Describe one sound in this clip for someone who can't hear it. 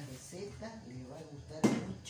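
A metal bowl clanks against a tabletop.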